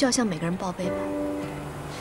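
A young woman speaks in a worried tone.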